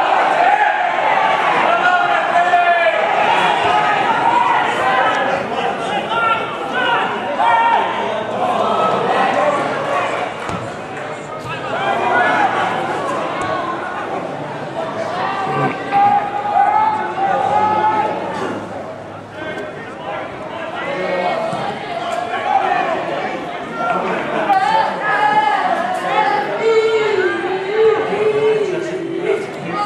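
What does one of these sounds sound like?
A crowd of spectators shouts and calls out across an open field.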